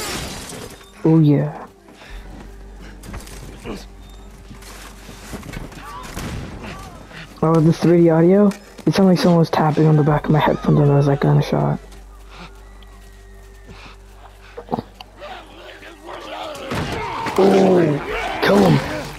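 A man grunts and groans with strain close by.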